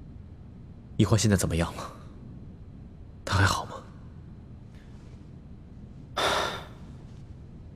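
A young man speaks tensely in short bursts, close by.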